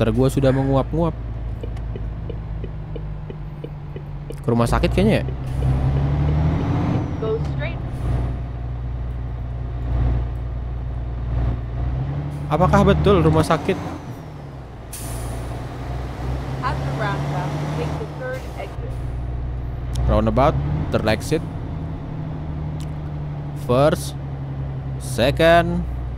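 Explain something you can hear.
A heavy truck engine rumbles steadily with a low drone.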